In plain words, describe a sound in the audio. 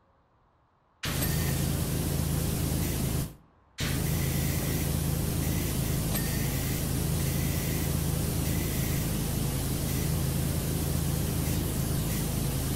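A pressure washer sprays water with a loud, steady hiss.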